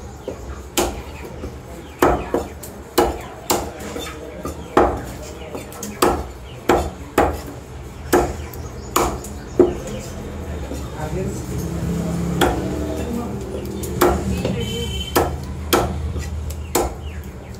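A cleaver chops through meat and bone onto a wooden block with sharp, repeated thuds.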